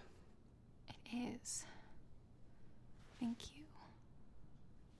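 A young woman speaks hesitantly and upset nearby.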